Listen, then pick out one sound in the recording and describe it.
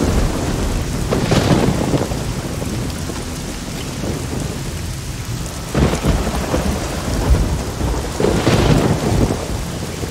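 Water splashes as someone wades through a shallow stream.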